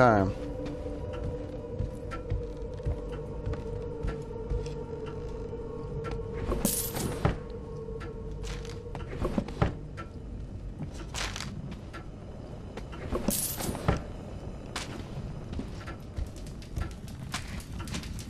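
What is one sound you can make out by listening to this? Footsteps creak and knock on wooden floorboards.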